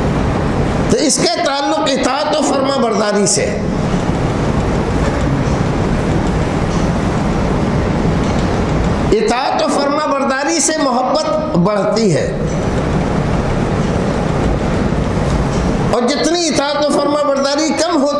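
A man lectures with animation through a clip-on microphone.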